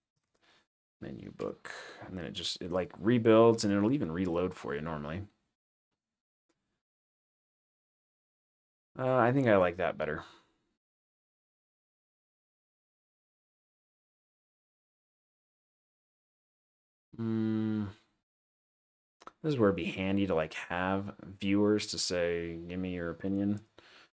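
A young man talks calmly and close to a microphone, in bursts with pauses.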